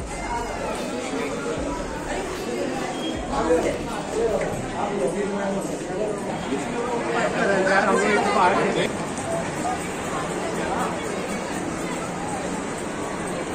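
Many voices of a crowd chatter throughout a large echoing hall.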